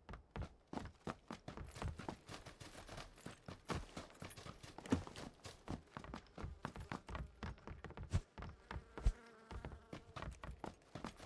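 A video game character's footsteps run over grass and wooden floors.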